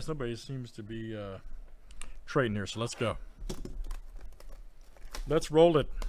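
Hands rub and tap a plastic-wrapped cardboard box.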